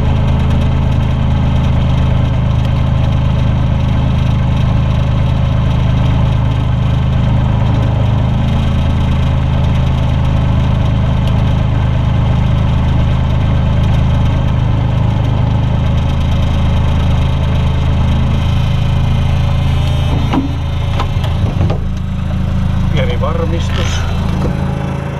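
A heavy diesel engine idles with a loud, steady drone.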